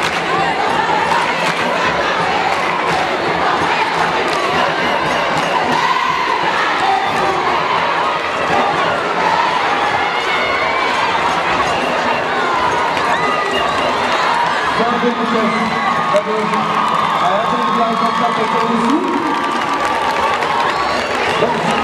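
A large crowd of young people sings and chants loudly in a big open stadium.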